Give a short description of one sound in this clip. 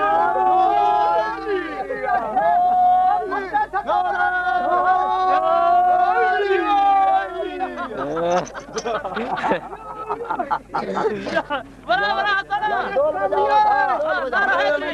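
Men sing loudly together.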